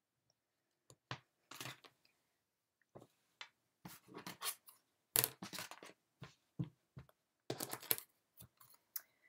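Soft fabric rustles as a garment is shaken and smoothed.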